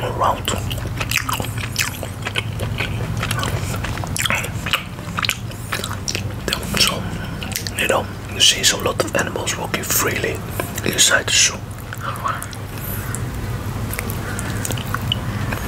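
A man chews food with his mouth close to a microphone.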